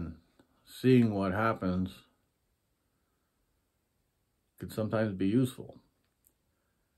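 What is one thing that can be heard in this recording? A middle-aged man speaks calmly and close up, in short phrases with pauses.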